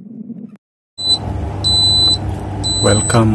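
An electronic controller beeps as its buttons are pressed.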